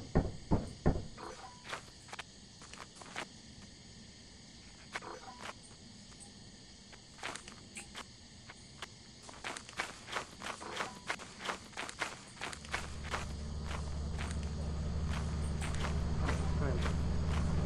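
Footsteps crunch through undergrowth.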